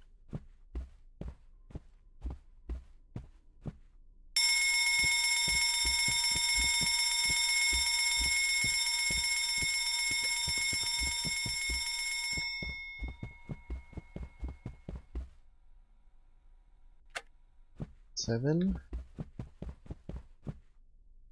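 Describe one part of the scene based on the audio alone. Slow footsteps tread on a hard floor.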